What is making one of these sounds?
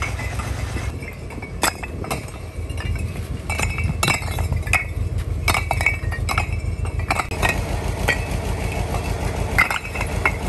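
Bricks clatter and clack sharply as workers pull them from a pile.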